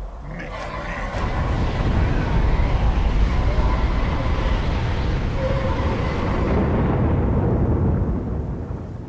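A magical blast roars and crackles loudly, then dies away.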